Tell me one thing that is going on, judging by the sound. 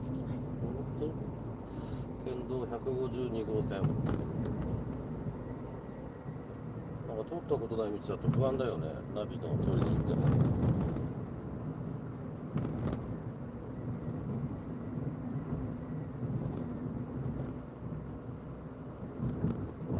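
Tyres roll steadily on asphalt.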